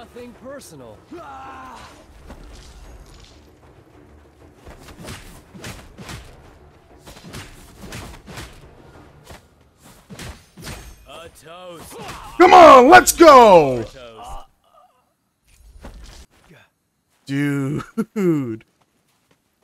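A young man talks excitedly into a microphone.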